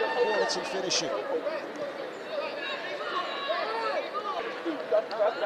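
Teenage boys shout and cheer excitedly outdoors.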